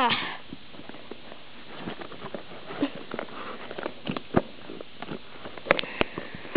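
A cardboard box scrapes and bumps softly across a carpet.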